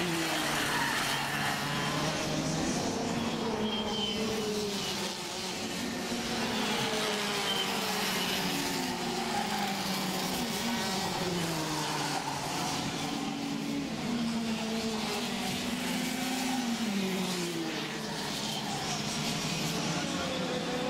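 Kart engines buzz and whine loudly, rising and falling in pitch as they speed up and slow down.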